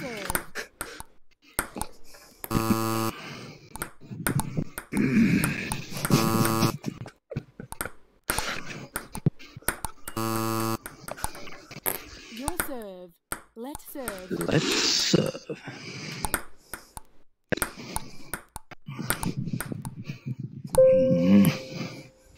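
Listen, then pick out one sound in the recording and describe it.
A table tennis ball clicks against paddles and the table in a quick back-and-forth.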